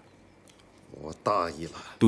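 An older man speaks quietly and gravely, close by.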